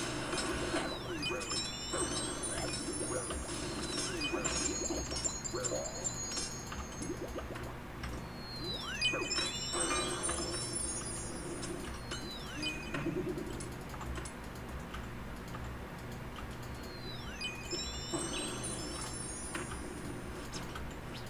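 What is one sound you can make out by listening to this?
Magic spell effects whoosh and chime again and again.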